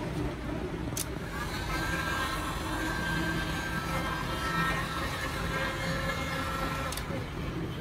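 A heat gun blows with a steady whirring hum.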